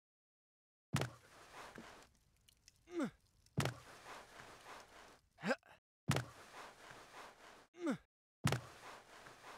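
Hands grab wooden poles with short knocks and whooshes.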